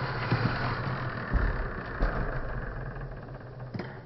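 A small toy car whirs and rolls across a wooden floor.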